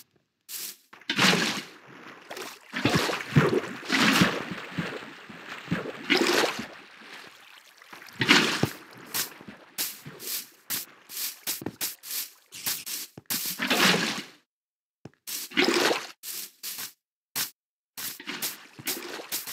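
Water splashes as it is poured from a bucket.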